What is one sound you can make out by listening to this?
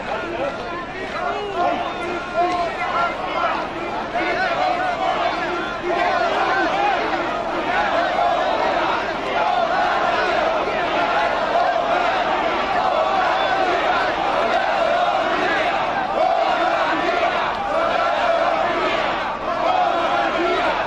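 A large crowd of men and women chants and murmurs outdoors.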